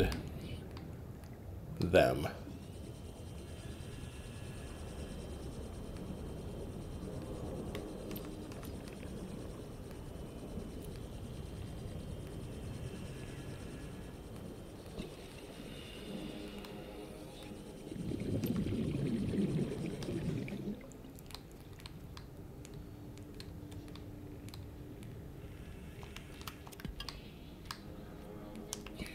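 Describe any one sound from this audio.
A small underwater craft's motor hums steadily as it glides along.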